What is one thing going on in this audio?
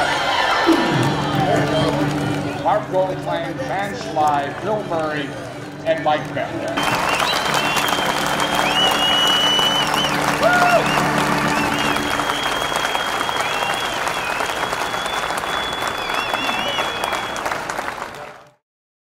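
A large crowd cheers, whistles and claps in an open stadium.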